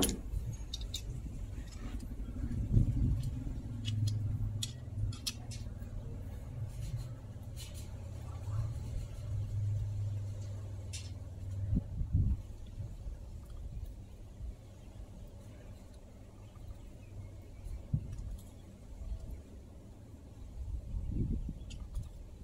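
A wrench ratchets as a bolt is turned.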